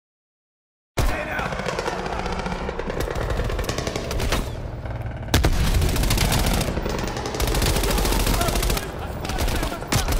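Gunfire from a submachine gun rattles in bursts, echoing through a large hall.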